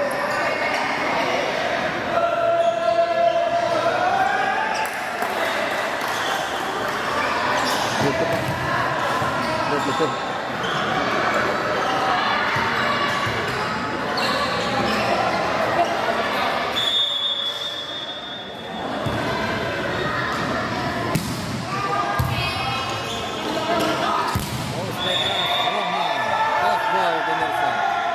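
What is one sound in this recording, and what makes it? Young players shout to each other on court.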